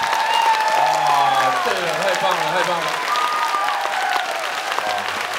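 A large crowd applauds and claps steadily in a big hall.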